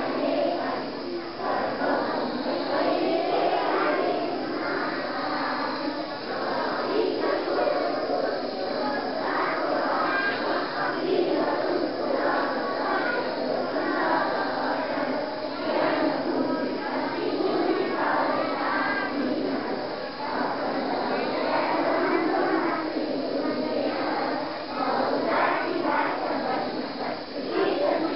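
A large crowd of young students sings together outdoors.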